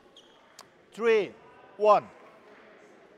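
A young man shouts loudly twice.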